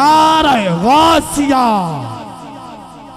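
A man chants in a high, drawn-out voice through a loudspeaker, with a long echo trailing off.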